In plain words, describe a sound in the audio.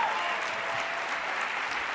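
A large audience claps and cheers in a big hall.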